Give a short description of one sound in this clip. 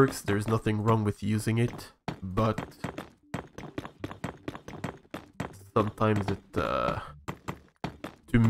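Blocks break with rapid crunching knocks.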